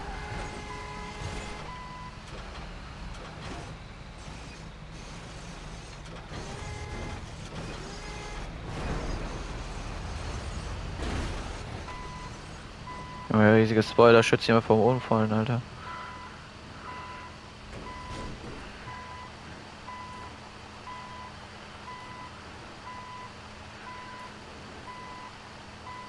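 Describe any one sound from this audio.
A diesel bulldozer engine rumbles.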